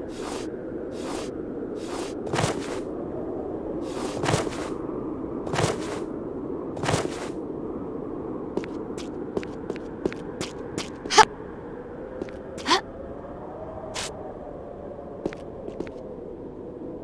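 Footsteps tap on a hard floor as a game figure runs.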